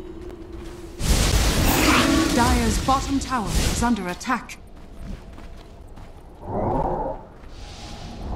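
Game spell effects whoosh and crackle in bursts.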